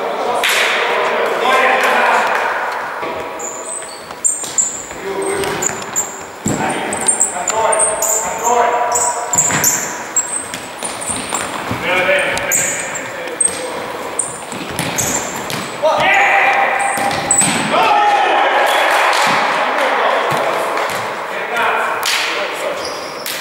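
Men shout to each other in an echoing indoor hall.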